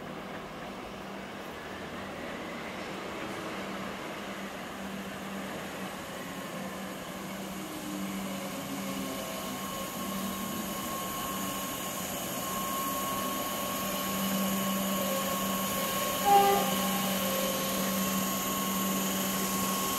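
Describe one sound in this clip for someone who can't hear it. An electric train approaches along the tracks, growing steadily louder.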